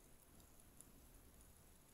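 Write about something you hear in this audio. A young woman chews softly close up.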